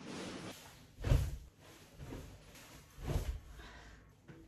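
A body thumps onto a mattress.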